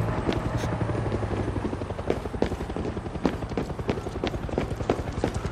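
Footsteps walk quickly over hard ground.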